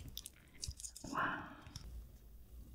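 A spoon scrapes through thick sauce.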